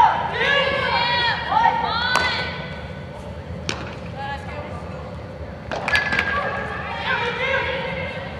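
Young women shout and call out loudly in a large echoing hall.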